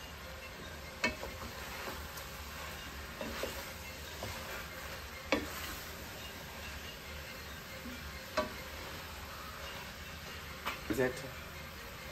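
A wooden spoon scrapes and knocks against a metal pot.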